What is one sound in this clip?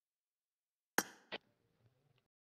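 A game menu button clicks twice in quick succession.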